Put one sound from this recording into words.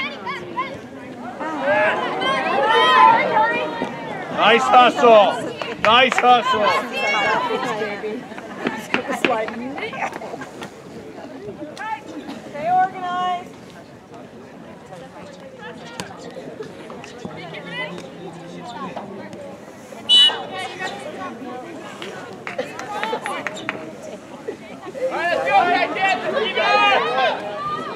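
Young women and spectators shout and call out across an open field outdoors.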